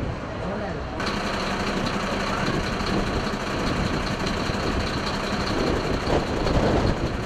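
A fire truck's engine idles with a steady hum.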